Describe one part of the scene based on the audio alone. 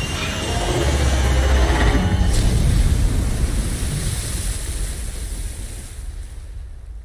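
Rain patters steadily on water.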